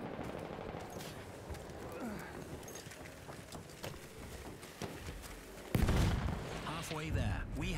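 Gunshots crack sharply and repeatedly.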